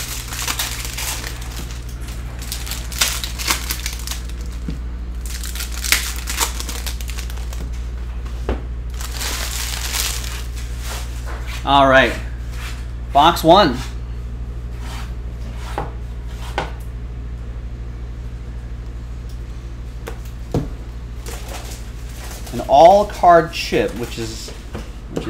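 Cards shuffle and slap against each other.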